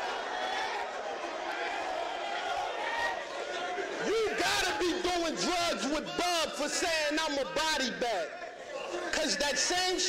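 A crowd cheers and shouts in the background.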